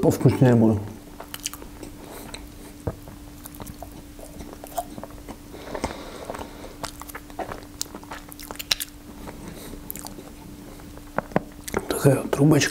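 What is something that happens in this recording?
A young man chews and smacks his lips.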